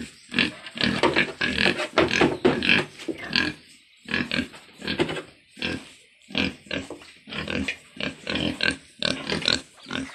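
Pigs grunt and snort close by.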